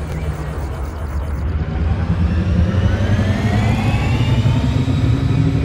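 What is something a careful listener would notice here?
A spaceship engine rumbles low and steady.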